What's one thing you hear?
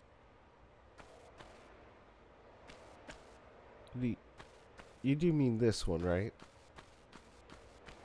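Footsteps patter quickly on a stone floor in an echoing hall.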